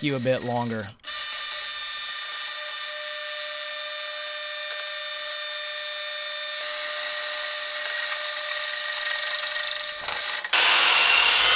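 A drill press whines steadily as it bores into metal.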